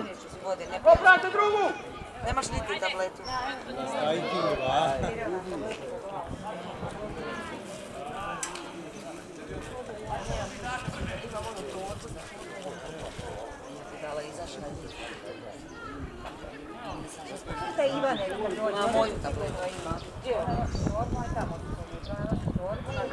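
Men call out and shout to each other across an open field.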